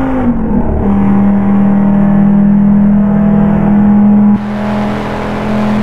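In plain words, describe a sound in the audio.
A car engine hums steadily at speed.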